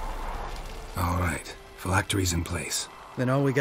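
A man speaks in a low, gravelly voice, calmly and close by.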